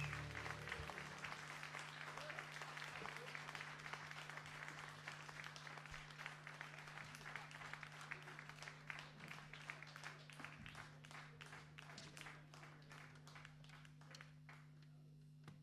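An audience claps and cheers, then the applause fades away.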